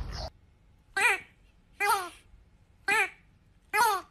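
A dog lets out short, high whining cries.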